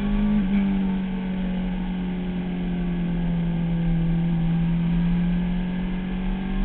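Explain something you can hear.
A motorcycle engine roars at high, steady revs close by.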